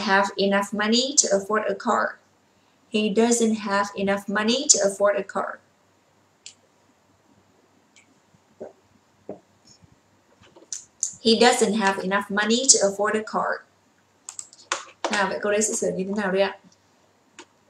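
A young woman speaks calmly and clearly into a close microphone, in bursts with pauses.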